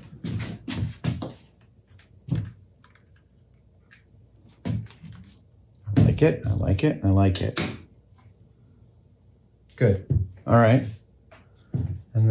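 An older man talks calmly and close by.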